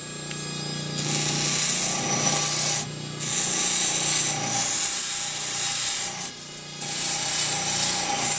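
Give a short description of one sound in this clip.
A small rotary tool whines at high speed, cutting in and out in bursts.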